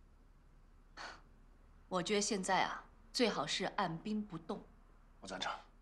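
A woman speaks calmly and closely.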